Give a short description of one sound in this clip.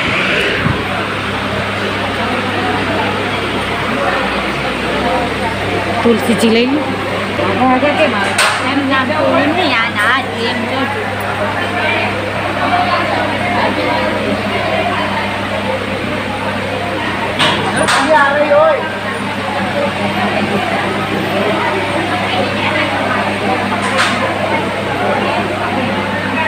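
A crowd of women and men chatters around the listener.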